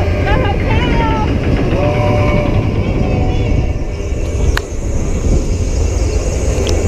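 A roller coaster rumbles along its track.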